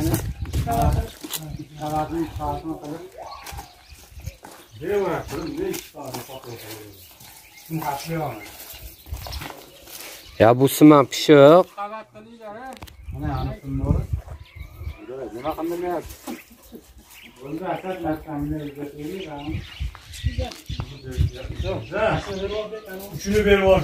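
Several young men talk and call out to each other outdoors.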